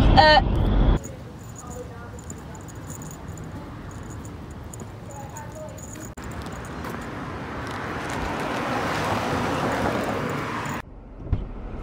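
Footsteps tap on brick paving.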